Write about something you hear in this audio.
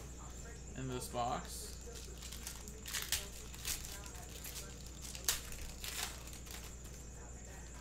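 A foil card pack crinkles and tears open.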